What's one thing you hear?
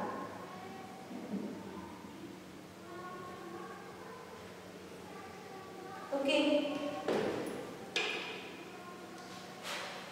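A woman speaks calmly, as if explaining.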